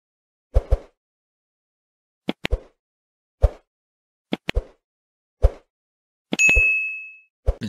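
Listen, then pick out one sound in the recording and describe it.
Mouse clicks sound sharply several times.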